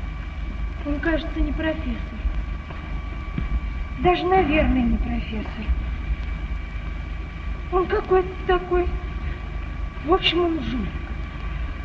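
A man speaks tensely in short phrases.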